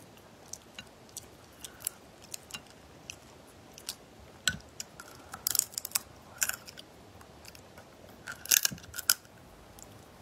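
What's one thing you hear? Crab shells crack and crunch as they are pulled apart.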